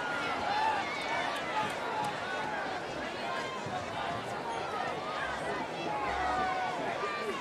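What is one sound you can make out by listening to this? A crowd of spectators murmurs and cheers outdoors.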